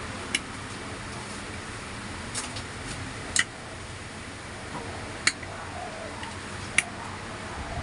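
Metal tools click and clink against metal parts.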